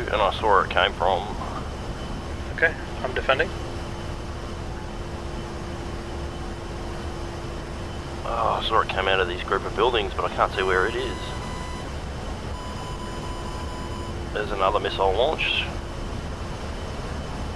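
A jet engine roars steadily.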